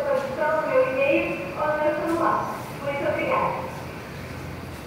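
A woman speaks through an online call over a loudspeaker in a large room.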